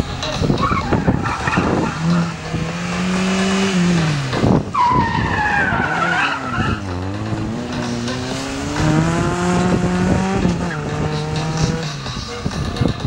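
A small car engine revs hard, rising and falling in pitch.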